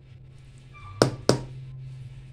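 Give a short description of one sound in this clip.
A spoon knocks against a metal bowl.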